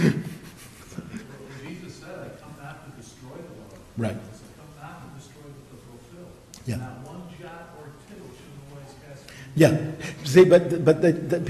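An older man speaks with animation into a microphone.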